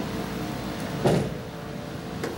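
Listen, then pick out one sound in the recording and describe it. A bowling ball thuds onto a lane.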